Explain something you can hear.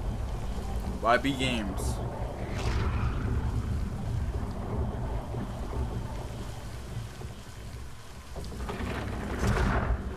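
A young man speaks briefly and quietly, close to a microphone.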